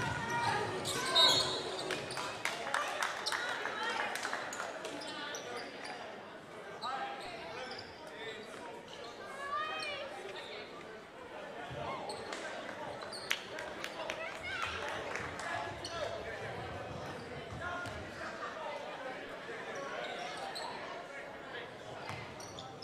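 Players shout and call out in a large echoing gym.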